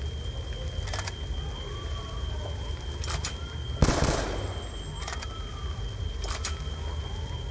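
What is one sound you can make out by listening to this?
Metal clicks and clacks of a rifle being handled and reloaded.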